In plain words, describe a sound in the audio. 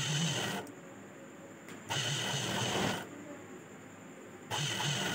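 A sewing machine runs in short, fast bursts with pauses between.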